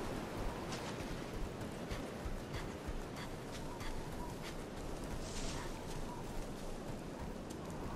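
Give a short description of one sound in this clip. Footsteps crunch on grass and gravel.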